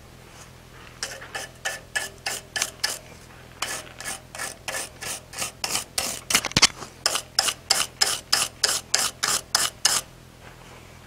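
A hammer strikes metal in quick, even blows.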